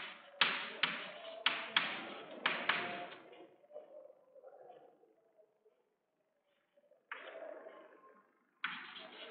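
Chalk taps and scrapes on a blackboard in an echoing room.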